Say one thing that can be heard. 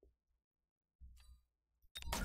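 A game menu gives a short chime.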